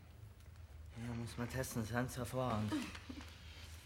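A second man answers in a low, quiet voice.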